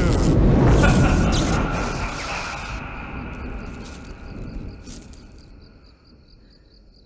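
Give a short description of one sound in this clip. A loud magical whoosh bursts out and slowly fades away.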